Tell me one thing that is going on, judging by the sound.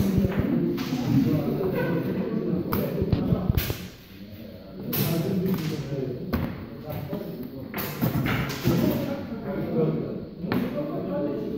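Wooden chess pieces tap and knock on a board.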